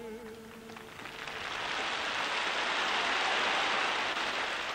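A large crowd cheers and applauds outdoors.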